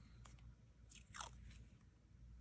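Tape peels off a roll with a brief tearing sound.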